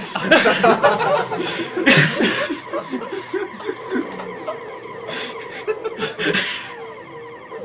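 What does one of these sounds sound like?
Electronic game blasts and beeps play.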